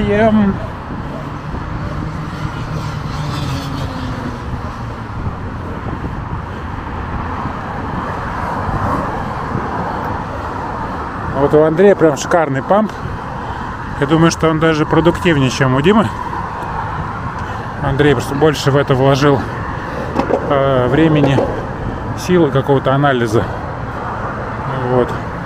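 Skateboard wheels roll steadily over pavement.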